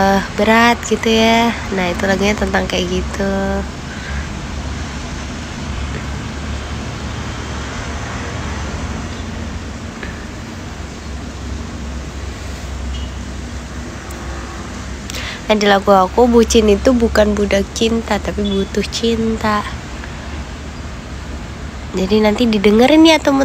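A young woman speaks softly and playfully close to a microphone.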